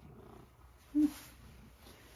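A cat meows briefly.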